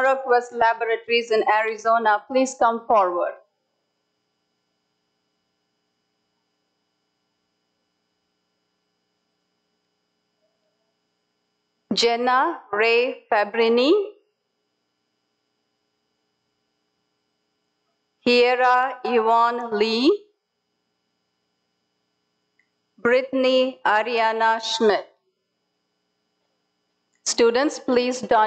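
A woman speaks clearly in short bursts over an online call, with long silences between.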